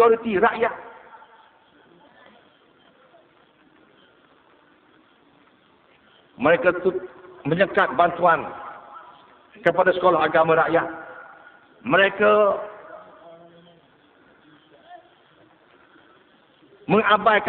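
A middle-aged man speaks with animation through a microphone and loudspeakers, in bursts with long pauses.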